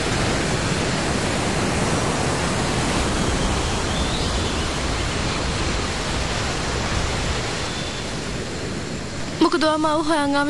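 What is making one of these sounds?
Surf washes and breaks on a shore.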